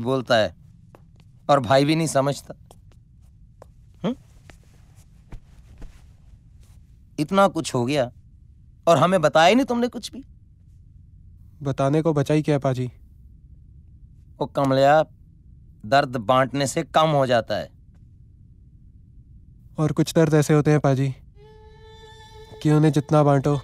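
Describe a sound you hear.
A younger man answers calmly, close by.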